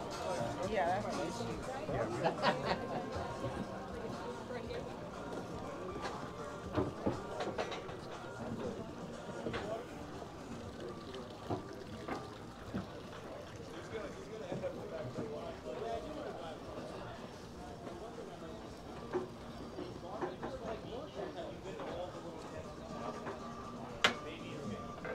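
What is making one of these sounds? A crowd of men and women chatters in the open air.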